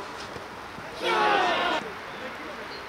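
A crowd of spectators cheers loudly in a short burst.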